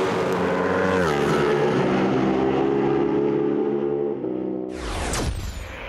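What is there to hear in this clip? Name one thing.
A motorcycle speeds past and fades away.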